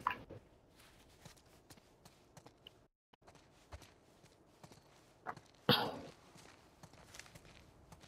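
Footsteps walk on a hard floor.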